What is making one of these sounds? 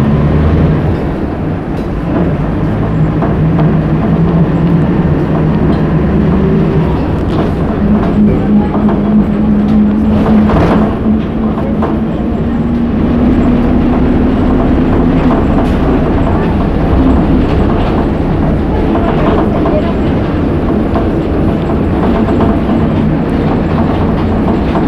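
A bus interior rattles and clatters as the bus rides along.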